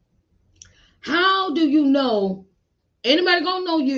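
A woman speaks expressively, close to a microphone.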